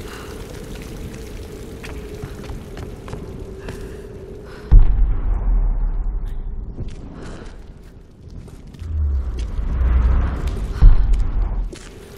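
A torch flame flickers and crackles.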